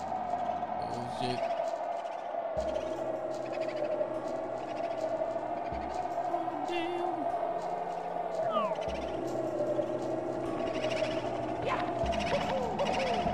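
Steady, upbeat video game music plays throughout.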